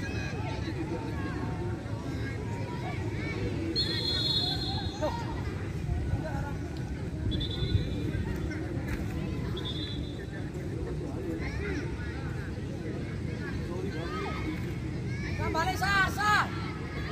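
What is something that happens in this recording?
Young men shout and call to each other far off across an open field.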